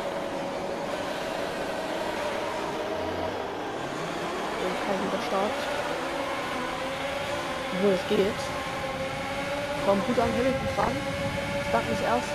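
A racing car engine idles and then roars as the car speeds up through the gears.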